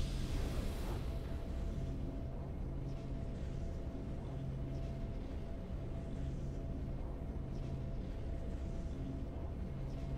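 A triumphant victory fanfare plays softly with steady held tones.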